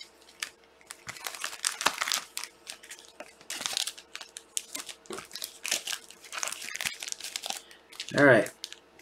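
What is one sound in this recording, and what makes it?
Plastic wrappers crinkle and rustle as packs are handled.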